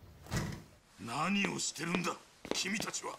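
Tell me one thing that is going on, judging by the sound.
A middle-aged man shouts in surprise, close by.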